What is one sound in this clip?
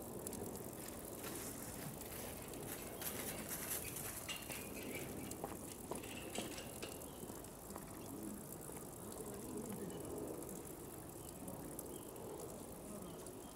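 Water splashes softly as animals move in a pool.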